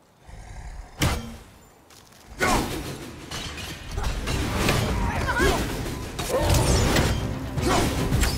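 An axe strikes with heavy blows.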